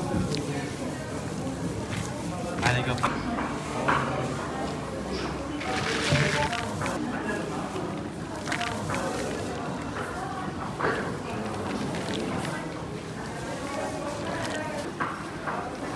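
Dry strands rustle and crackle as hands toss and fluff a heap of them.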